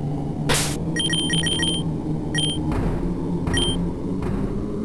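Short electronic menu beeps chirp several times.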